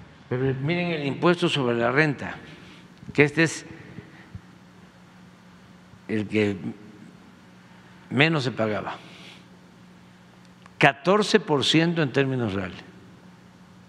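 An elderly man speaks calmly through a microphone in a large echoing hall, with pauses.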